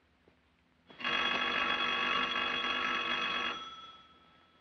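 A telephone bell rings steadily.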